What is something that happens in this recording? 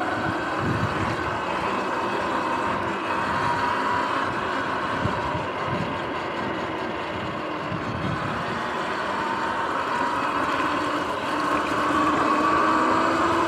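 An electric bike motor whines steadily, rising and falling in pitch with speed.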